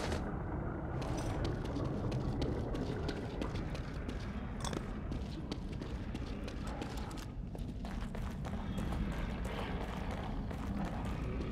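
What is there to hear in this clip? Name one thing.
Footsteps walk slowly over a hard floor.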